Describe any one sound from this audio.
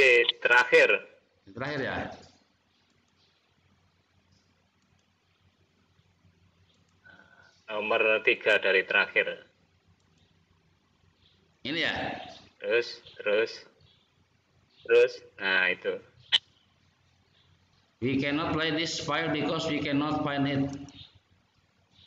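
A young man speaks in bursts over an online call.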